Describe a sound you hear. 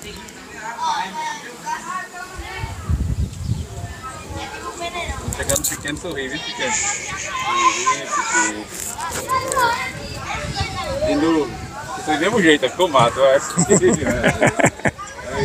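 Young men speak into a microphone, one after another, close by.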